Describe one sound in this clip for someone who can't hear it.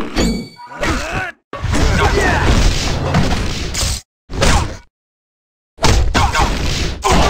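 Punches and blows land in a rapid fight.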